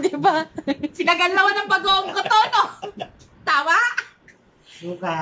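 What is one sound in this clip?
A middle-aged woman laughs loudly close by.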